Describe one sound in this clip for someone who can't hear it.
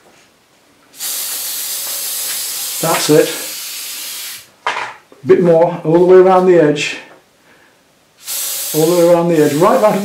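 A spray can hisses in bursts.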